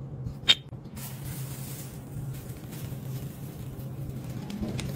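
Molten metal pours onto sand and sizzles softly.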